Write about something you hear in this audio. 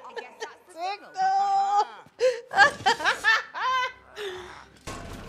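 A young woman laughs loudly into a close microphone.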